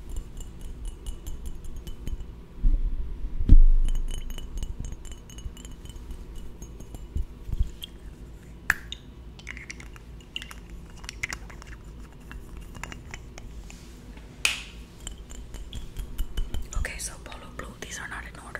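Fingernails tap and scratch on a glass bottle close to a microphone.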